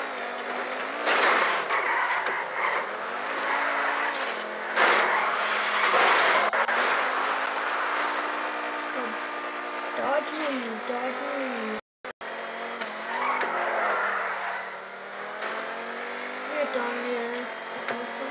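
A race car engine roars loudly, rising and dropping in pitch as it shifts gears.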